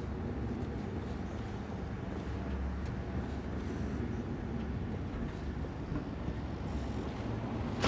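A low mechanical hum drones steadily.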